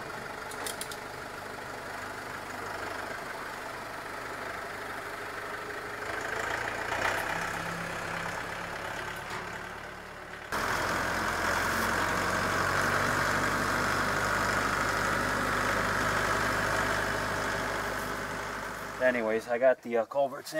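A tractor engine runs steadily outdoors.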